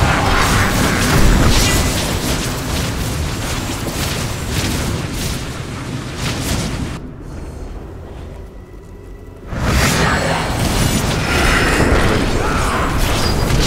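A fiery beam roars.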